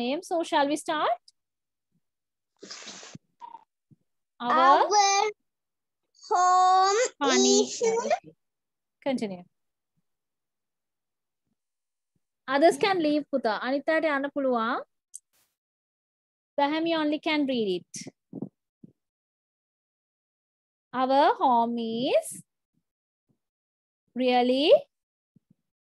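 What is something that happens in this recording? A woman speaks clearly in short phrases over an online call, reading out slowly.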